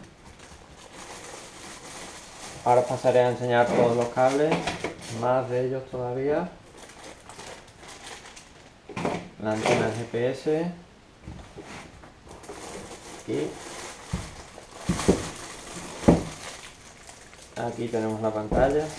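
Cardboard and plastic packaging rustles and crinkles.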